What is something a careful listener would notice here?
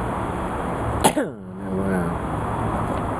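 A man speaks briefly close by in a loud voice.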